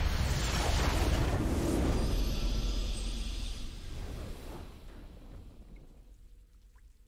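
A triumphant game fanfare swells loudly, then fades away.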